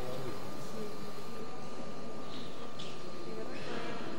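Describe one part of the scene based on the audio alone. Men and women murmur quietly in a large echoing hall.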